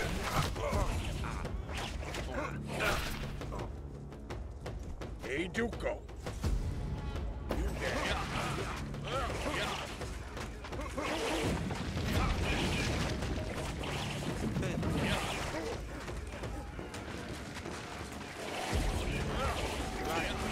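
Swords clash and soldiers fight in a busy battle.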